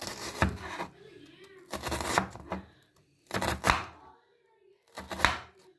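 A knife chops through an onion and knocks on a wooden board.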